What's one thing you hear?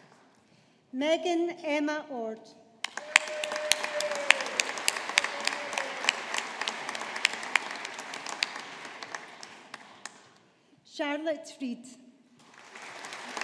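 A woman reads out through a lectern microphone.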